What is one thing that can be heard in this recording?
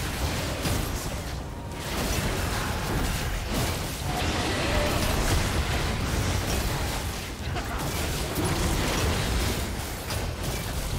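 Magic blasts and clashing combat sound effects crackle and boom continuously.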